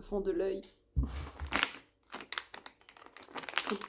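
A plastic bottle crinkles in a hand.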